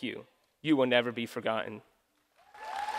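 A young man speaks into a microphone in a large hall.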